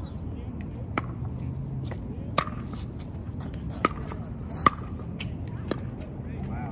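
Paddles hit a plastic ball with sharp, hollow pops.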